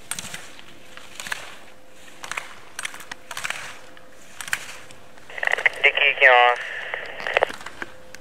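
Ski poles clack against slalom gates.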